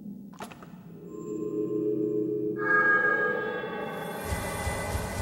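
A low, eerie hum swells and rings out as glowing lights come on one after another.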